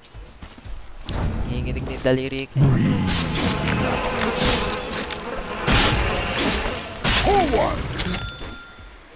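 Magic spells burst and crackle with loud booms.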